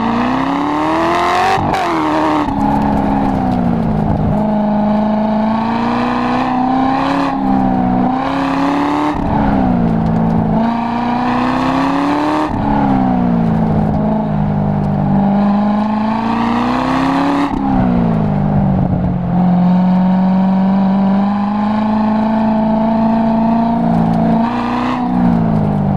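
A car engine revs hard, rising in pitch and dropping sharply with each gear change.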